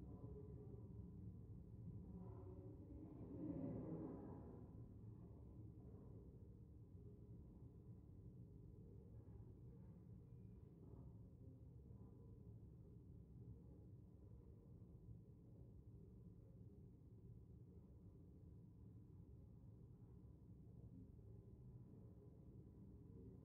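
A low murmur of voices and movement fills a large echoing hall.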